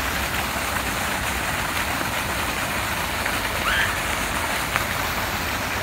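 A small fountain splashes steadily into a pond.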